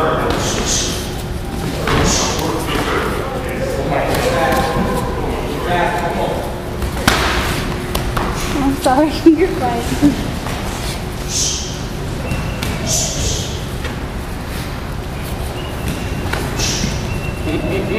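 Boxers' feet shuffle and squeak on a padded floor.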